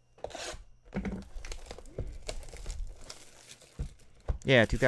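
Plastic wrap crinkles and rustles as hands tear open a box.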